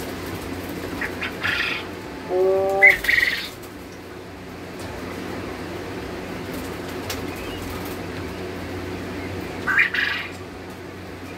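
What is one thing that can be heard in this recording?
A plastic crate rattles and scrapes as it is handled.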